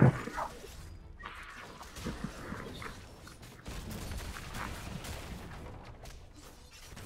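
Game characters clash with swords and spell blasts.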